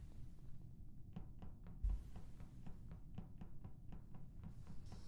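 Quick soft footsteps patter as a game character walks.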